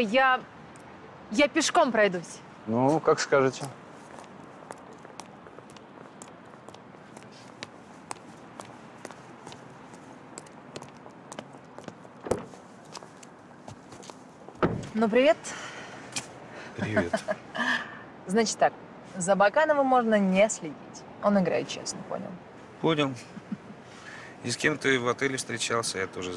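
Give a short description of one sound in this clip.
A woman speaks and laughs close by.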